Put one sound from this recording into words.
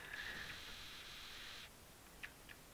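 Short electronic blips sound as text types out letter by letter.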